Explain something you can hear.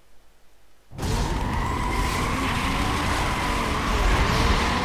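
Several car engines idle and rev together before a race start.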